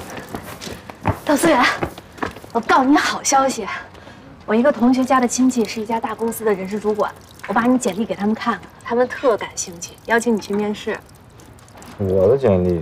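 A young woman talks cheerfully nearby.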